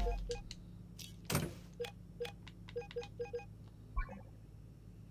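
Short game menu clicks tick softly.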